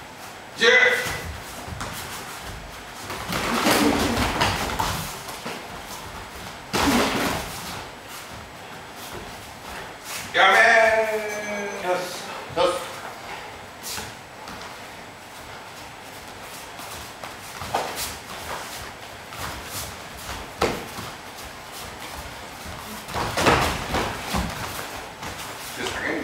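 Punches and kicks thud against padded gear in a slightly echoing room.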